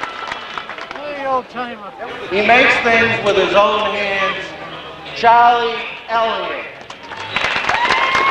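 A man announces loudly through a microphone and loudspeakers, echoing outdoors.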